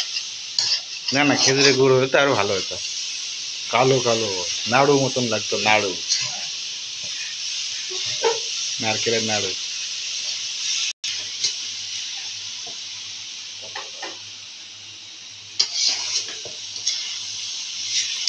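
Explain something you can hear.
A metal spatula scrapes and stirs inside a metal pan.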